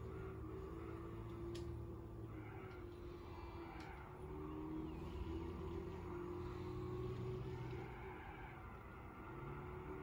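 A sports car engine in a racing game revs, slows and downshifts, heard through a television speaker.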